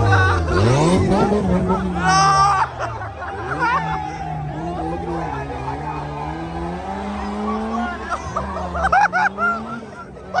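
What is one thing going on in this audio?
A car engine revs loudly and roars.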